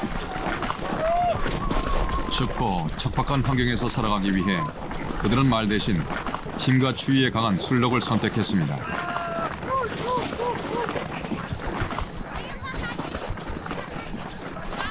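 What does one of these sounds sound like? Hooves crunch through snow.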